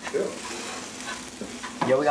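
A spoon scrapes and stirs food in a frying pan.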